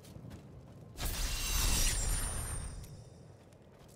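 A magical portal sound swells with a rushing shimmer and fades.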